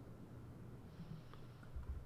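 A pickaxe chips at stone with short knocks.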